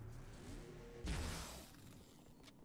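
A heavy blow lands with a whooshing thud.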